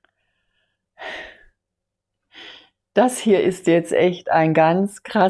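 A middle-aged woman breathes out softly, then speaks warmly and with feeling, close to a microphone.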